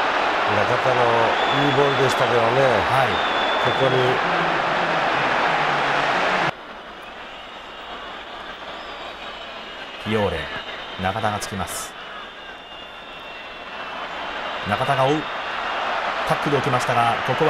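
A large stadium crowd roars loudly, then quietens and swells again.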